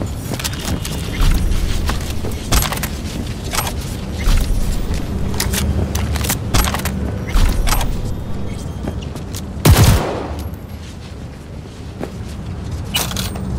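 Gunshots crack sharply, one after another.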